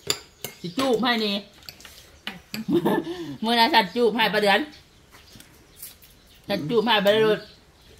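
Cutlery clinks against plates.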